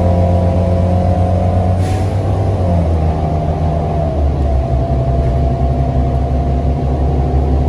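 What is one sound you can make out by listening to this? A bus engine hums and drones steadily while driving.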